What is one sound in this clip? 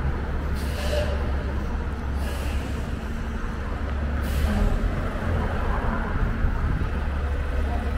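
A bus idles and pulls along nearby.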